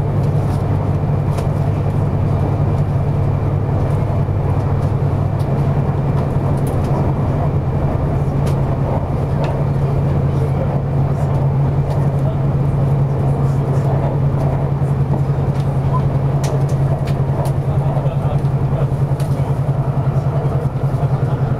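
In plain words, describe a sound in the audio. A train rumbles steadily along the tracks at speed.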